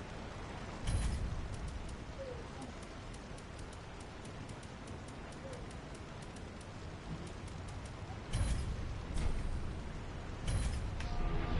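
A fiery explosion bursts with a deep boom.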